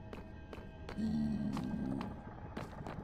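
A creature grunts low nearby.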